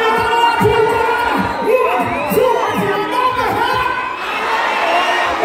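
A man raps loudly into a microphone over booming loudspeakers.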